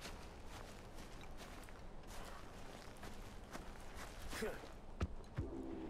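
Footsteps rustle through grass and brush.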